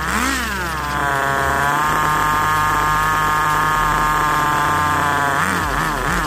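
A nitro engine on a radio-controlled buggy holds a high, steady rev.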